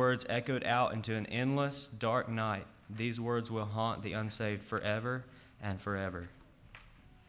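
A young man speaks calmly through a microphone in an echoing hall.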